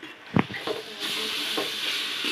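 Water swishes as a hand stirs it in a pot.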